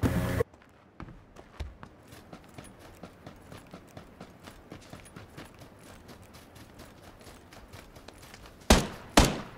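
Footsteps patter quickly over the ground.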